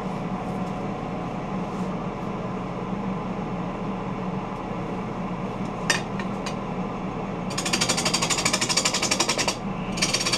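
A wood lathe spins with a steady hum.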